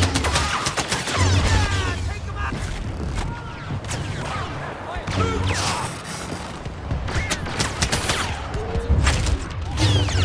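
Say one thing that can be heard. A lightsaber hums and swooshes as it swings.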